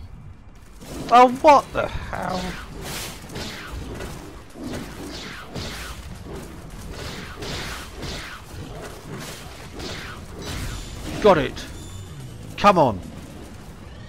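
Tigers growl and snarl loudly.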